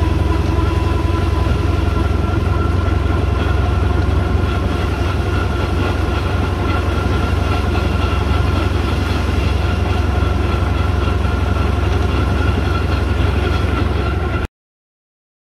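Wind buffets past the moving vehicle.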